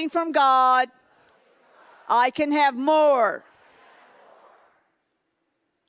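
A middle-aged woman speaks into a microphone in a large echoing hall, her voice ringing out.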